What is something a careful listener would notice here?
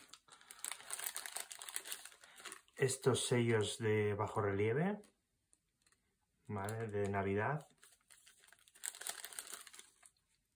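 Plastic packaging crinkles in a pair of hands.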